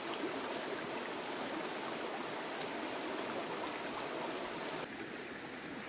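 Shallow stream water flows and babbles steadily.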